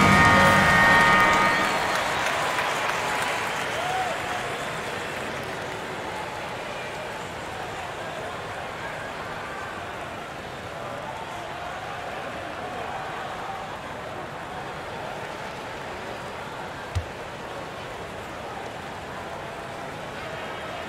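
A large crowd cheers loudly in an echoing arena, then settles to a steady murmur.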